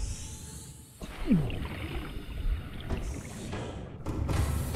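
A metal hatch clunks and hisses open.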